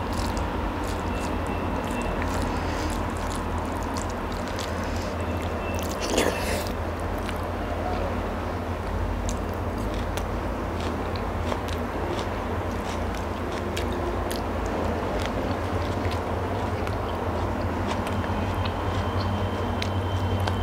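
Fingers squish and mix soft food close to a microphone.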